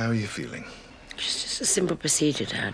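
A woman speaks weakly.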